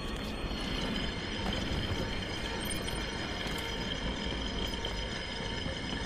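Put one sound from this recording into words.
Footsteps run quickly over a hard surface.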